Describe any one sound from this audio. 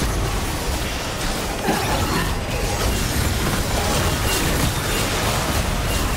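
Magic spells whoosh and blast in a busy fight.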